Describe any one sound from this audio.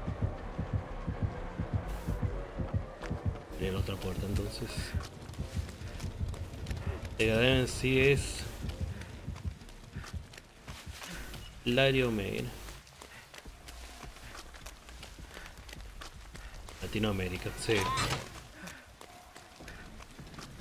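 Footsteps run quickly over grass and boards.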